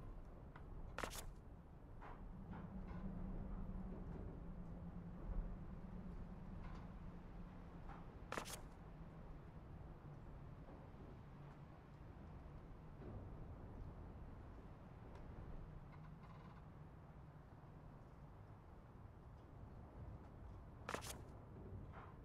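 A page turns with a short papery swish, a few times.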